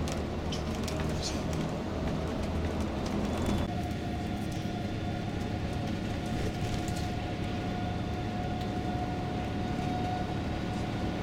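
Tyres rumble on an asphalt road.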